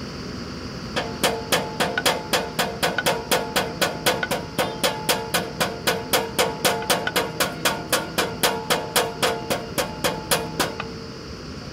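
A drilling rig clanks rapidly in a quick, even rhythm.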